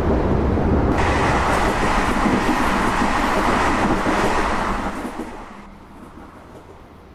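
A passing train roars by close at hand and fades into the distance.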